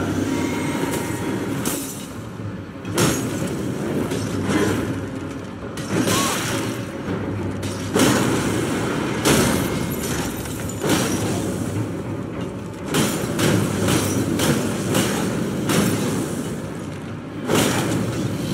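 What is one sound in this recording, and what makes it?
Blades clash and strike with sharp metallic hits.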